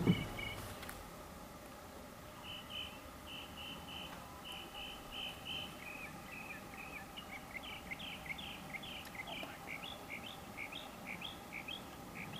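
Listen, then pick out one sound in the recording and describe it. A deer crops and chews grass close by.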